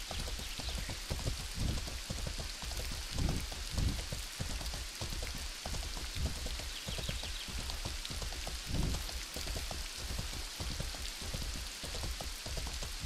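Horse hooves thud rhythmically on grass at a gallop.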